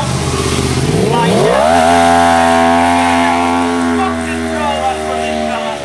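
A motorcycle engine revs up sharply and holds a loud, steady roar.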